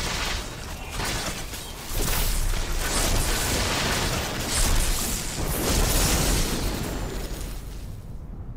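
Lightning crackles and booms loudly.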